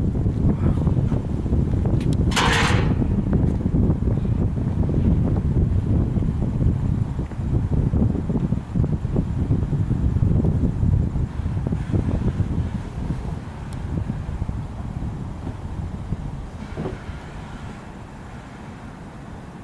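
Strong wind gusts roar and buffet outdoors, easing off toward the end.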